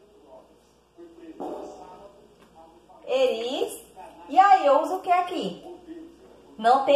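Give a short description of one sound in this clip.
A young woman speaks clearly and with animation, close by.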